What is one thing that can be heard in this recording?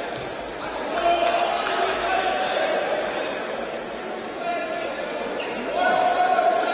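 Players and spectators shout in an echoing sports hall.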